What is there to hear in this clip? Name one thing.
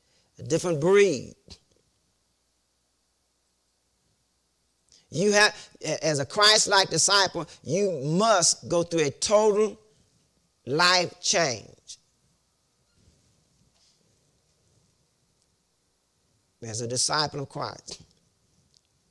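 A middle-aged man preaches with animation into a microphone, with long pauses between phrases.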